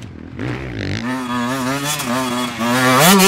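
A second dirt bike engine revs up close.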